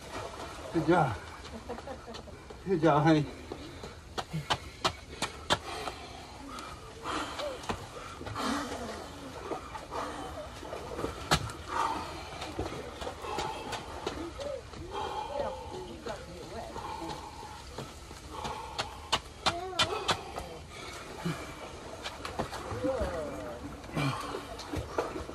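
A middle-aged man talks close by, calmly and with some effort.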